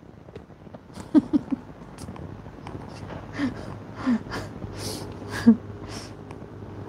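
A middle-aged woman laughs softly.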